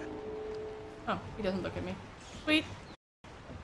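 A young woman speaks casually into a microphone.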